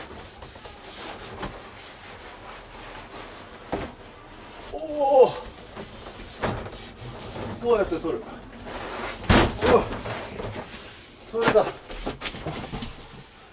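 Cardboard boxes scrape and thump as they are lifted down.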